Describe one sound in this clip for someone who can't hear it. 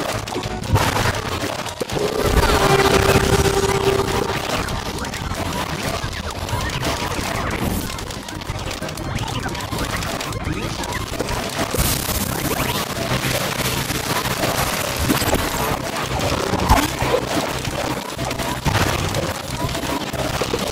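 Small explosions and impacts burst now and then.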